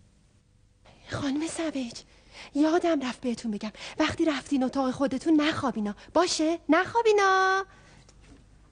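A young woman speaks excitedly, close by.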